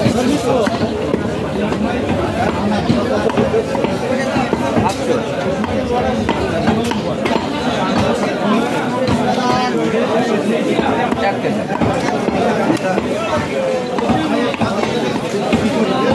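A knife slices and taps against a wooden block.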